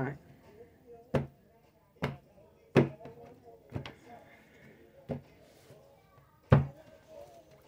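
Card piles are set down on a table with soft taps.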